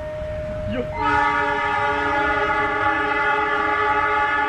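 A train horn blares loudly and steadily.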